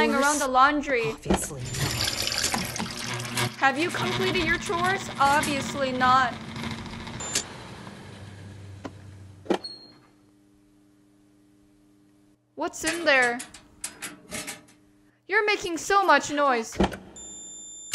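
A washing machine lid thumps shut.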